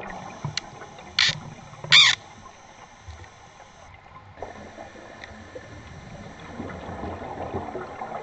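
An underwater welding arc crackles and hisses.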